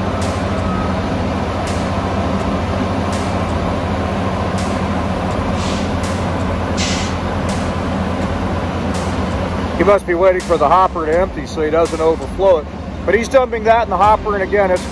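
A heavy machine engine rumbles steadily nearby.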